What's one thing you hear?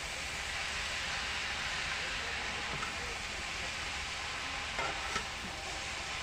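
A metal spoon scrapes and stirs in a pan.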